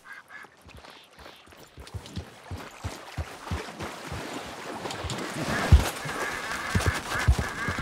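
Horse hooves clop on stone and gravel.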